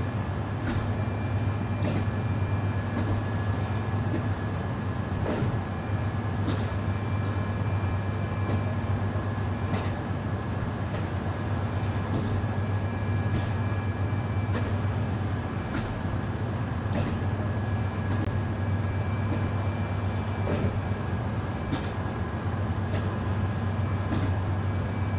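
A train engine hums steadily with a low drone.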